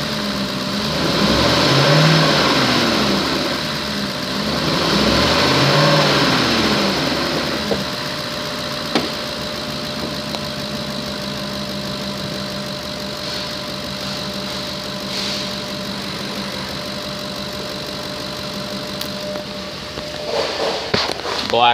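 A diesel engine idles with a steady rumble.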